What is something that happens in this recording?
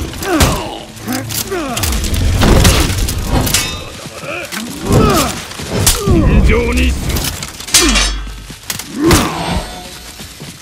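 A longsword clashes against armour and steel blades in a fight.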